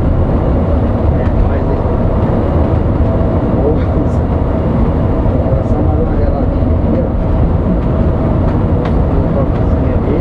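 Tyres hum on the road at speed.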